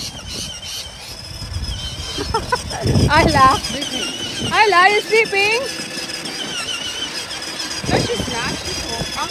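An electric ride-on toy car's motor whines.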